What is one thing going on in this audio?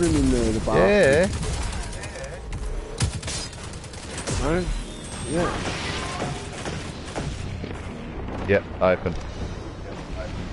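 A gun fires in quick shots.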